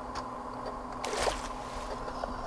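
A game character splashes into water.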